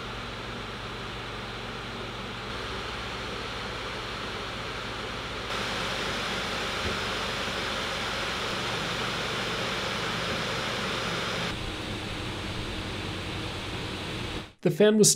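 Laptop cooling fans whir steadily, growing louder in steps and then easing off a little.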